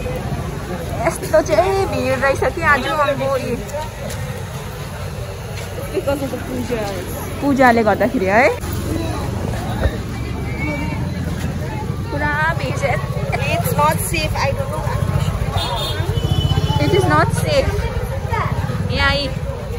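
Voices of men and women talk nearby with animation.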